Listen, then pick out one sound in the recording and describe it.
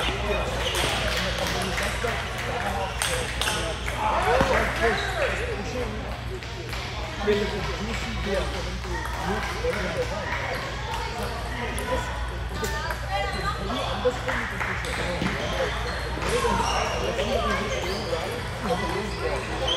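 Men and boys chatter nearby in an echoing hall.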